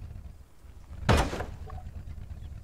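A truck crashes and tumbles over with a loud bang.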